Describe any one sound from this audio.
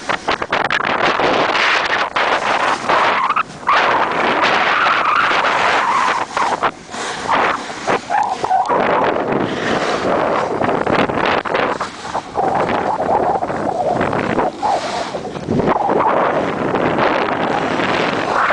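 Skis scrape and hiss over hard, packed snow.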